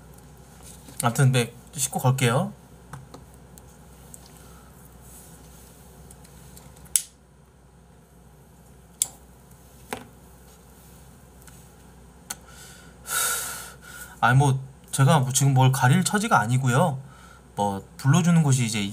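A man speaks casually, close to a microphone.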